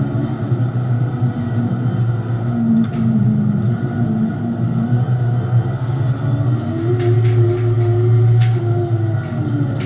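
A race car engine roars loudly from inside the cab, its pitch rising and falling.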